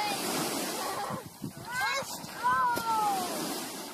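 Water splashes as someone falls in.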